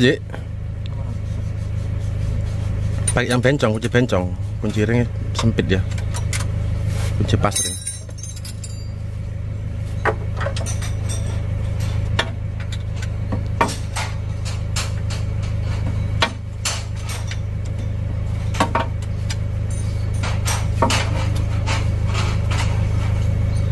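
Metal tools clink and tap against an engine.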